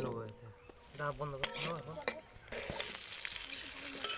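A metal spatula scrapes and clatters in a metal wok.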